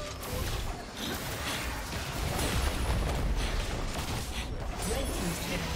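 Game spell effects whoosh and crackle in a fast fight.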